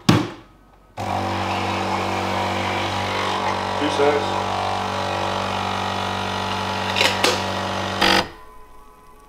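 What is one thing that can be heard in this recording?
A coffee machine pumps with a loud steady hum.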